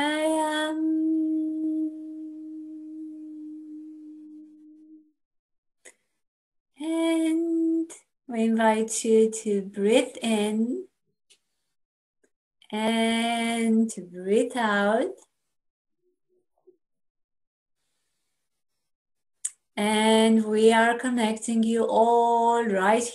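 A young woman sings slow, held notes over an online call.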